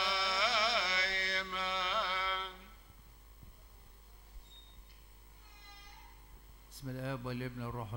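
An elderly man chants into a microphone, heard through loudspeakers in a large echoing hall.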